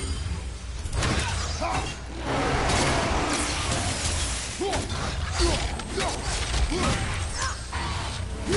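Blades clash and strike hard in a fight.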